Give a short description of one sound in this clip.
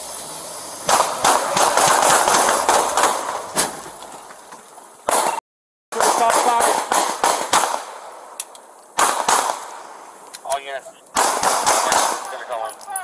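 Handguns fire a burst of shots outdoors.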